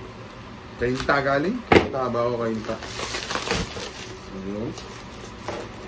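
Plastic wrap crinkles and rustles as it is torn off a box.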